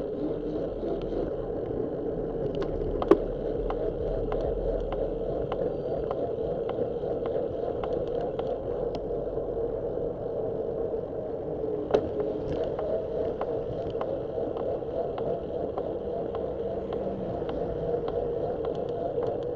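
Tyres roll on asphalt with a steady rumble.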